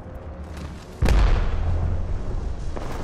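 A loud gunshot booms and rings out.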